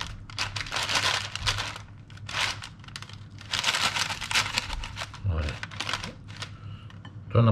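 Parchment paper crinkles and rustles as it is folded.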